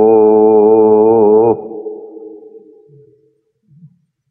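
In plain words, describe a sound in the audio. A man chants a long, held note in a melodic voice, which breaks off suddenly and echoes away.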